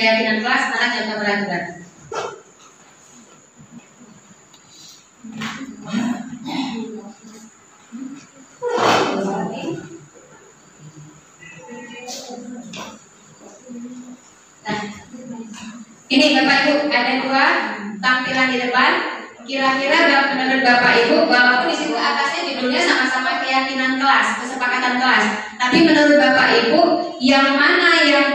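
A woman speaks into a microphone over a loudspeaker in an echoing room, pausing now and then.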